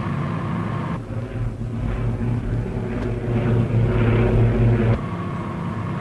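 Propeller engines of a large aircraft drone loudly and steadily.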